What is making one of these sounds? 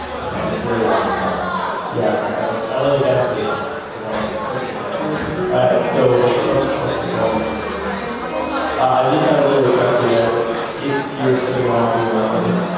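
An electric guitar strums chords through an amplifier.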